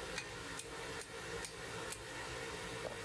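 A hammer strikes hot metal on an anvil with sharp ringing blows.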